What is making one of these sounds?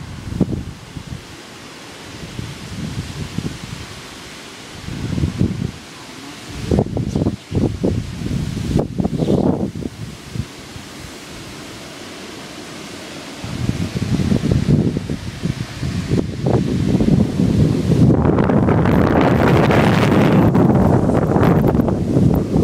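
Wind gusts roar outdoors through the trees.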